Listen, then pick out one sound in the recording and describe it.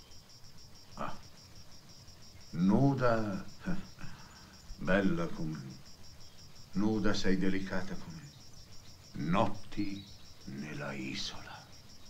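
A man speaks calmly and slowly nearby, with pauses.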